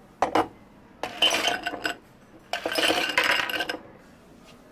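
Ice cubes clatter into glasses.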